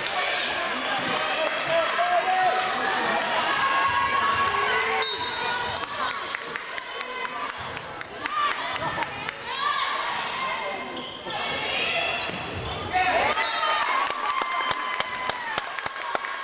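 Young women call out and shout to each other in an echoing hall.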